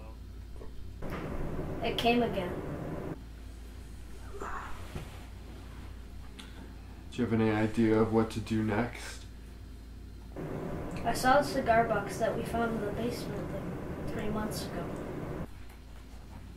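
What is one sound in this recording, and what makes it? A young woman talks into a phone, close by.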